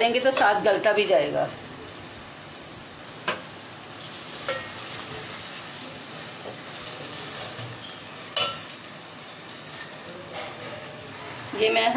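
A wooden spoon scrapes and stirs inside a metal pot.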